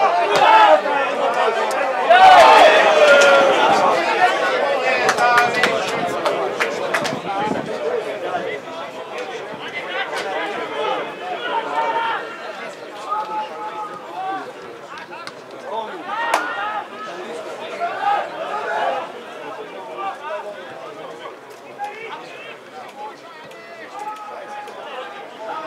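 Players shout across an open pitch in the distance.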